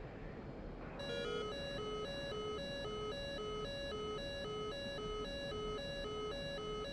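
A cockpit warning tone beeps rapidly over and over.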